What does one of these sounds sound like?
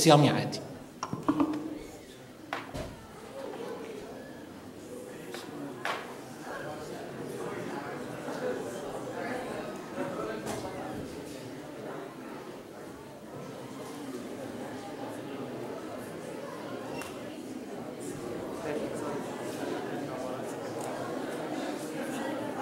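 A crowd of people murmurs and talks quietly in the background.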